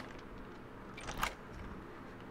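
A metal bolt slides open with a sharp clack.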